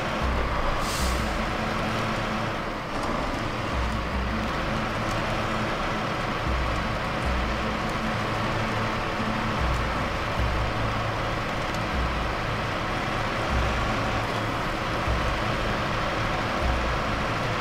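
A truck's tyres crunch over snow and rocks.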